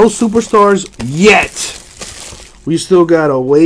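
A foil card pack crinkles and tears open close by.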